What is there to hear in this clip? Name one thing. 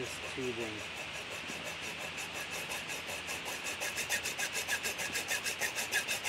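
A hacksaw rasps back and forth through metal.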